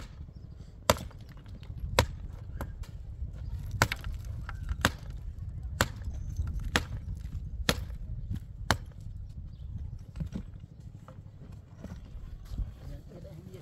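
A trowel scrapes and taps on stones and mortar.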